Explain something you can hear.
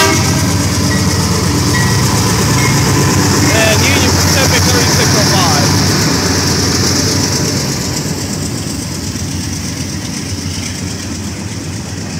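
A crossing bell rings.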